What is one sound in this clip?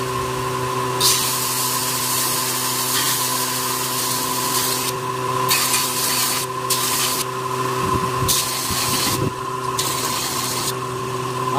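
A steel blade grinds against a sanding belt with a harsh hiss.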